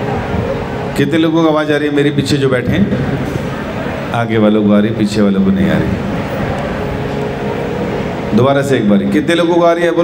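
A man sings into a microphone through loudspeakers, in bursts.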